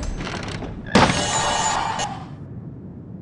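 A magical shimmering whoosh rings out.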